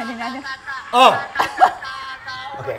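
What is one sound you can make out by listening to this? A woman laughs loudly into a microphone.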